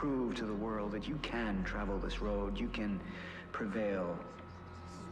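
A man speaks slowly and intently through a loudspeaker.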